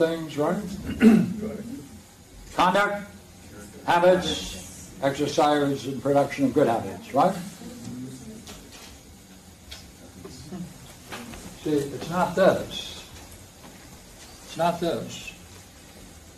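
An elderly man reads aloud from a book in a slow, measured voice in a room with some echo.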